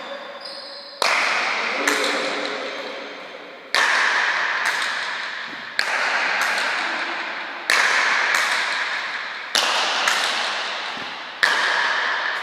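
Wooden paddles strike a ball with loud cracks.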